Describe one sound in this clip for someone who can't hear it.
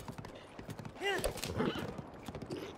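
A horse whinnies briefly.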